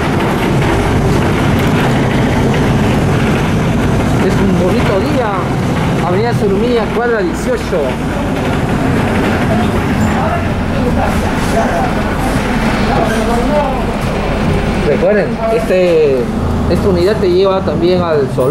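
A vehicle engine rumbles steadily as it drives along a street.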